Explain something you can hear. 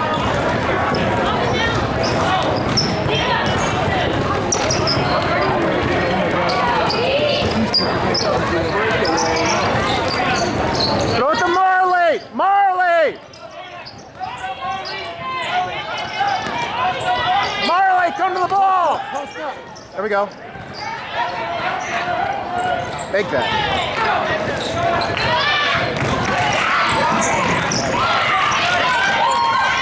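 Young women call out and shout across an echoing hall.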